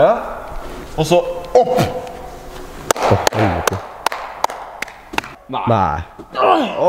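A young man talks with animation, close by, in an echoing hall.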